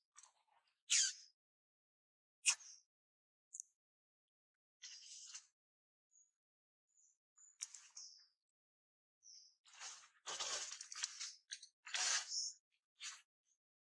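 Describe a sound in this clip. A baby monkey squeaks and whimpers in short bursts.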